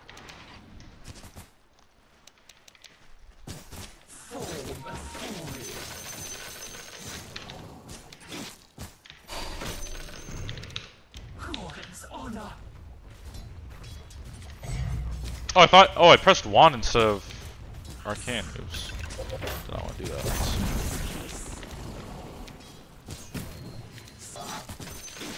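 Game spells and weapons clash and crackle in a battle.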